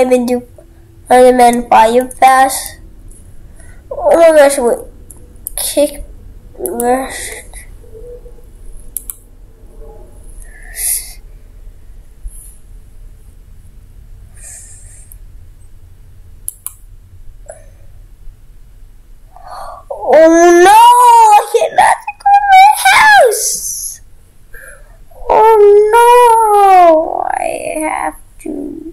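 A young boy talks with animation, close to a microphone.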